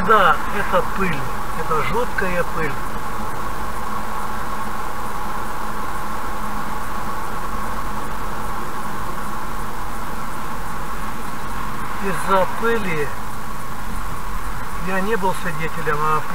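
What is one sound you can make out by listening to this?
A car drives steadily along a highway with a low engine hum and road noise.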